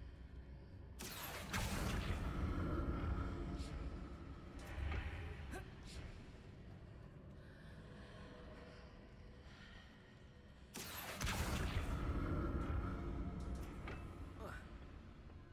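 A magical whoosh swells and hums as a heavy stone block is lifted and floats.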